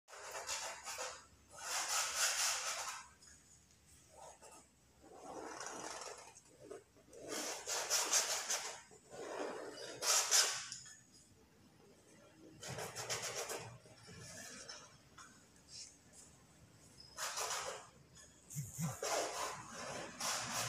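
Tape tears with a crackling rasp as it is peeled away in short bursts.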